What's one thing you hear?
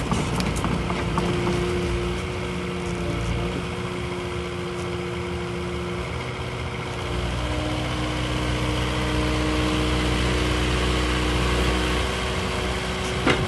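A diesel engine hums steadily and revs up.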